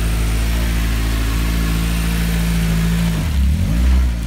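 A sports car engine idles.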